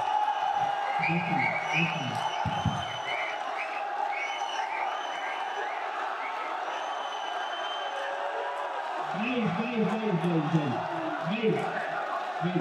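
A young man speaks through a microphone in a large echoing hall.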